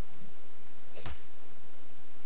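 A club strikes a small animal with a dull thud.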